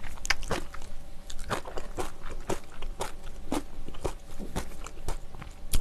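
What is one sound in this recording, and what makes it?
A young woman chews and smacks her lips noisily, close to a microphone.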